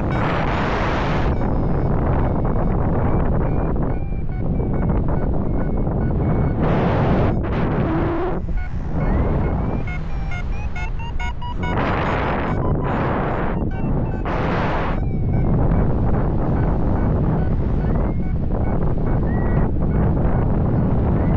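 Strong wind rushes loudly past the microphone, rising and falling in gusts.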